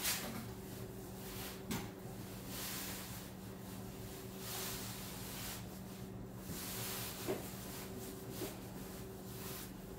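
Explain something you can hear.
Fabric rustles as a boat cover is pulled into place.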